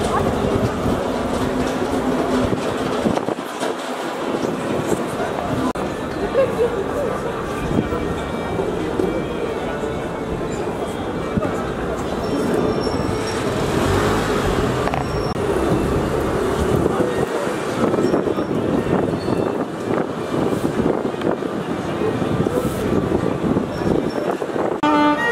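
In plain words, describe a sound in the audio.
Many footsteps shuffle along a paved street.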